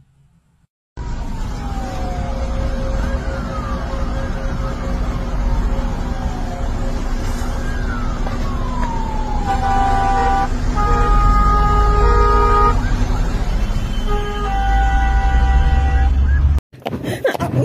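A car engine rumbles steadily as traffic drives along a road.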